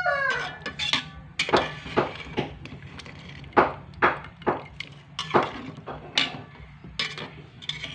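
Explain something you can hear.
A metal spoon scrapes and clinks against a metal pot while stirring.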